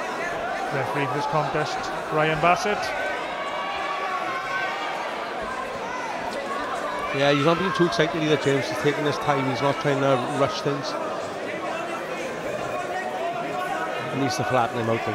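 Men in a crowd shout loudly in bursts.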